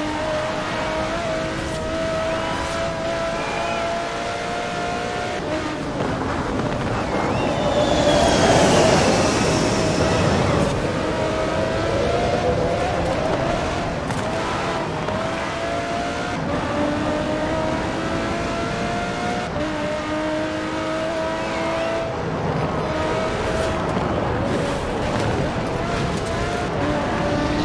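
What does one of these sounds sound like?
A racing car engine roars loudly, rising and dropping in pitch as gears change.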